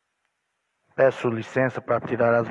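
A man speaks loudly into a microphone, heard through a loudspeaker in an echoing room.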